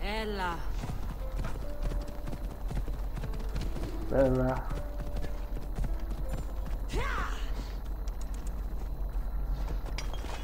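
Horse hooves thud steadily on the ground.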